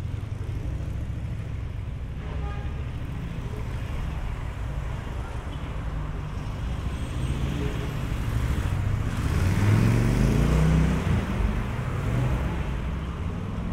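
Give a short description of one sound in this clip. A car engine hums low and steady while driving, rising in pitch briefly.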